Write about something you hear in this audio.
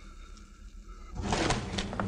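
Papers rustle and scatter.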